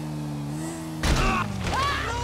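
A motorbike crashes with a loud thud.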